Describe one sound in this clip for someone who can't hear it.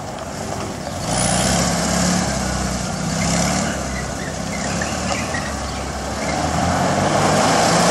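A small car engine revs hard as the car swerves around a tight turn.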